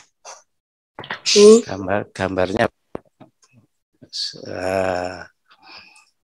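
A middle-aged man speaks calmly into a microphone, heard as through an online call.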